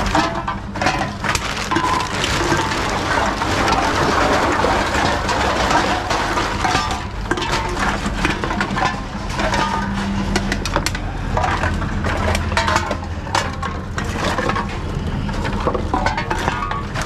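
Cans and bottles clatter and clink in a metal cart.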